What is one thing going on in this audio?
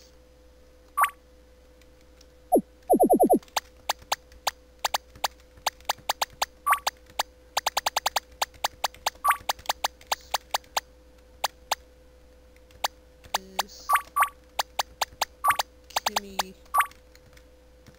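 Short electronic beeps tick quickly, one after another.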